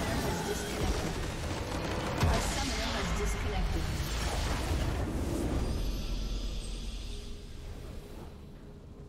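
A huge magical explosion booms and crackles.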